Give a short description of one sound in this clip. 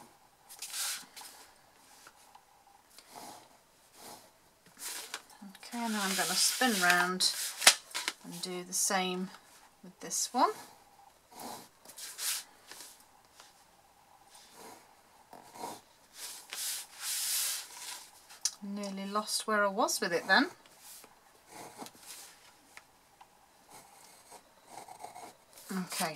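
A scoring tool scrapes and scratches along paper.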